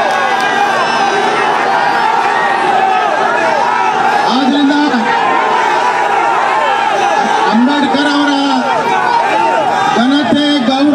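A large crowd shouts and chants loudly outdoors.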